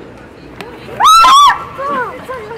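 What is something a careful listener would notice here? A young woman screams loudly in fright.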